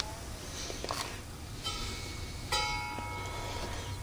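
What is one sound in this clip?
A hand taps a metal fan grille.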